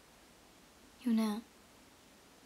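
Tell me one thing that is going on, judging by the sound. A young woman briefly says a short word close to a microphone.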